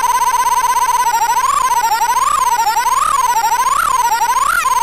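An electronic toy synthesizer makes a warbling tone that swoops up and down.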